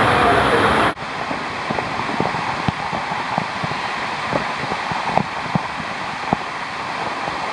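Water drips and splashes in sharp drops.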